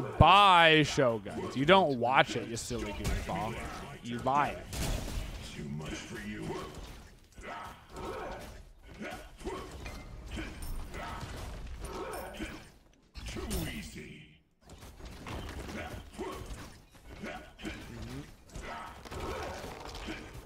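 Game sound effects of fighting and spells clash and whoosh.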